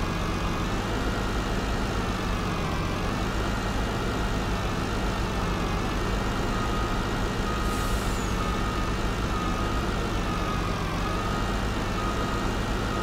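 A truck engine rumbles steadily as it drives and manoeuvres.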